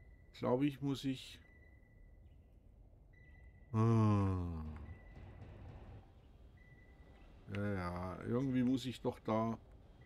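An elderly man talks calmly into a microphone.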